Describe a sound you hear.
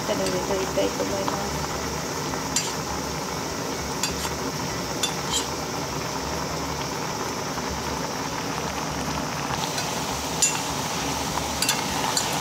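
Thick syrup bubbles and sizzles steadily in a pot.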